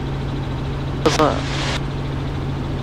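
An older man speaks briefly into a radio microphone.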